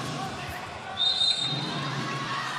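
A referee's whistle blows a short, sharp blast.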